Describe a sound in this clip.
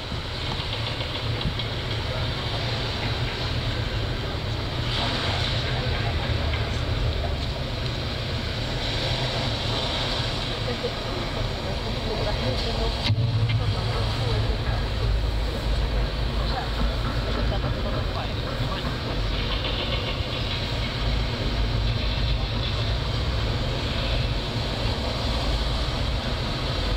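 Loud live music plays through big speakers in an echoing hall, with a deep booming bass.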